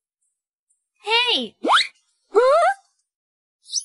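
Cartoon ducks quack in short, gliding calls.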